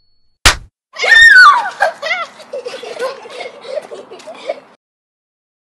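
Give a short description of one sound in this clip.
Young women cheer and shout with excitement.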